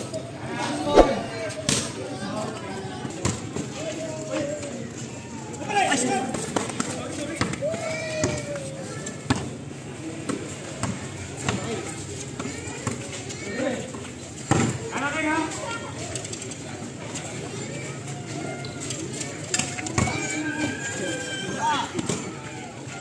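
A basketball bounces on concrete.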